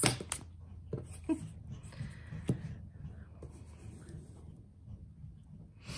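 A card is laid down with a soft tap on a table.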